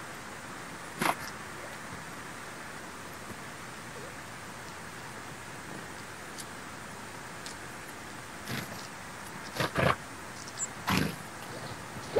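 Small birds flutter their wings briefly as they land.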